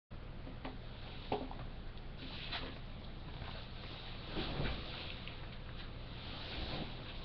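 Handling noises rub and knock close up.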